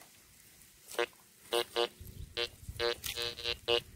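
A metal detector beeps in short bursts.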